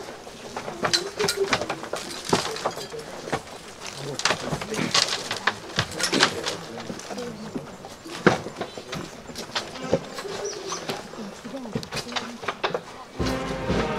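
A crowd of men and women murmur and talk close by outdoors.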